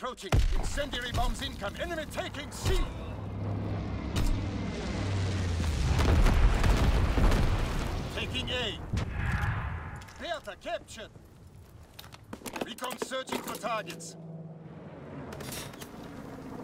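A machine gun fires in short bursts.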